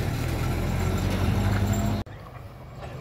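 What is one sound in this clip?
A car engine rumbles loudly close by as the car drives off.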